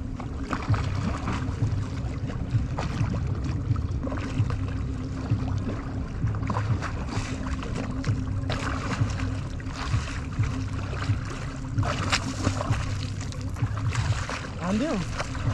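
A man splashes in the water with his hands.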